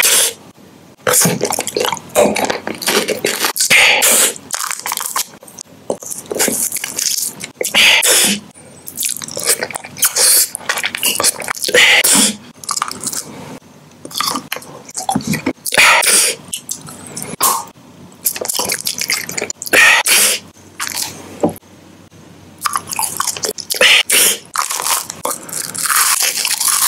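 A man chews with wet smacking sounds very close up.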